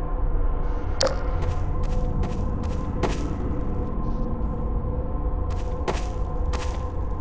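Footsteps clank on a metal surface.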